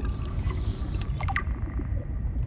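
A handheld scanner chimes as it finishes.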